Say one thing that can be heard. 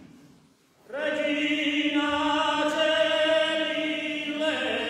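A male choir sings together in harmony in a large echoing hall.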